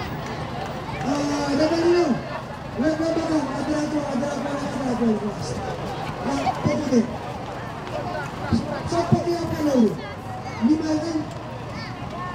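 An elderly man calls out in long drawn-out phrases through a loudspeaker.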